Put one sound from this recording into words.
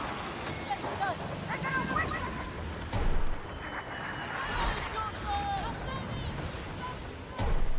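Waves wash against a ship's hull.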